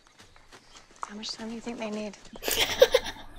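A woman speaks softly in a film.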